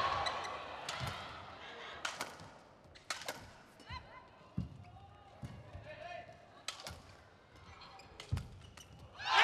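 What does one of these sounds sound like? Rackets strike a shuttlecock back and forth with sharp pops.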